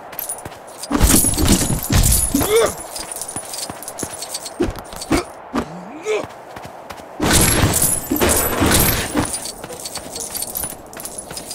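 Plastic bricks clatter and scatter as objects are smashed apart.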